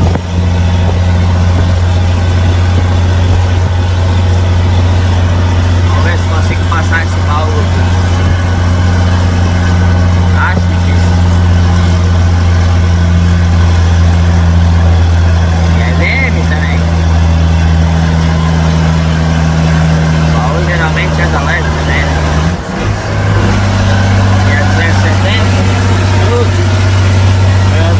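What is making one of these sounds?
A heavy truck engine drones steadily, heard from inside the cab.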